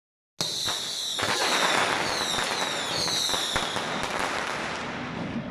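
Fireworks whistle and crackle loudly nearby.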